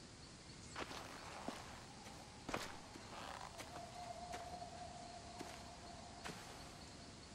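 Footsteps tread slowly on damp ground.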